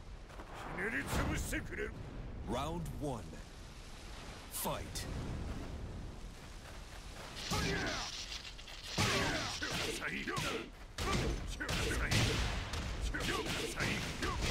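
A game fighter shouts with effort.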